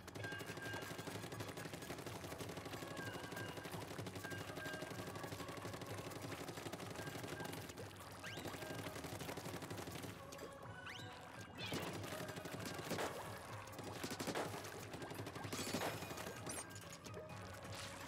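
Upbeat electronic game music plays steadily throughout.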